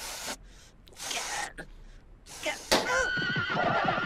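A balloon pops loudly.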